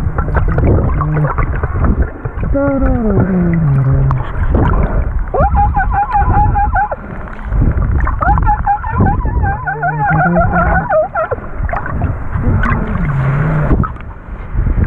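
Dolphins whistle and squeal underwater in rising and falling tones.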